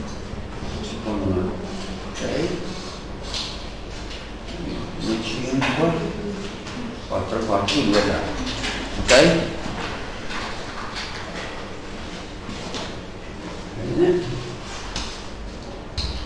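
A man speaks calmly and explains at a steady pace.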